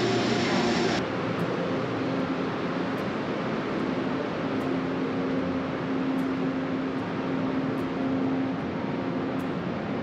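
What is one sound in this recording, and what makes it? A standing train gives off a steady electric hum.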